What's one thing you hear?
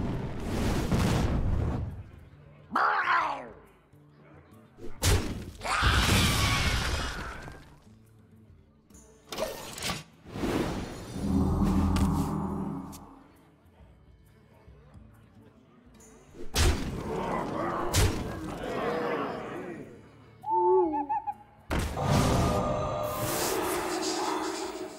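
Game sound effects burst and chime as cards attack and spells go off.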